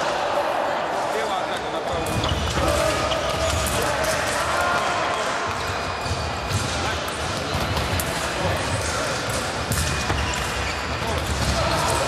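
Fencing blades clash and clink.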